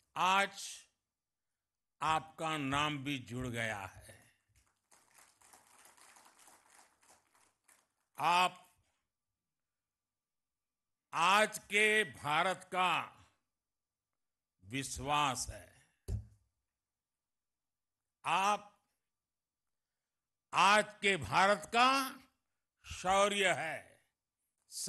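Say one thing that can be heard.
An elderly man speaks slowly and forcefully into a microphone, with long pauses.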